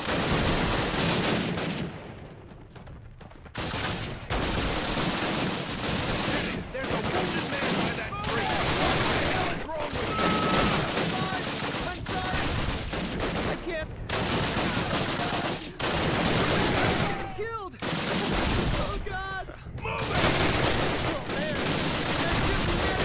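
Gunfire crackles and explosions rumble in a noisy battle.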